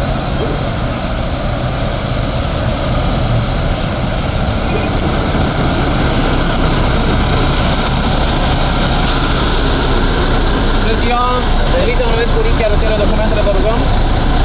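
A truck engine idles nearby with a low, steady rumble.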